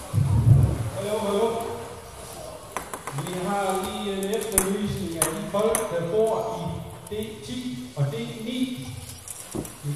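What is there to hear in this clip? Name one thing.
A man speaks up close.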